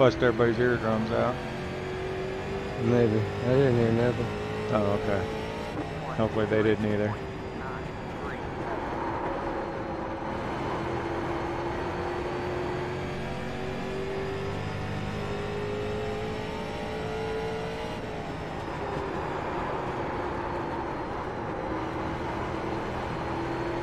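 A race car engine drones steadily at high revs, its pitch rising and falling slightly.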